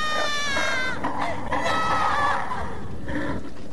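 A creature growls and gurgles wetly.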